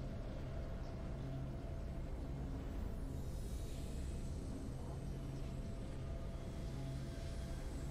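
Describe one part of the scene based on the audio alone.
Triumphant game music plays.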